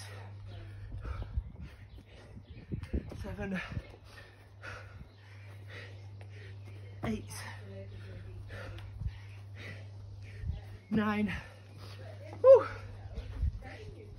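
Feet thump softly on grass as a man jumps.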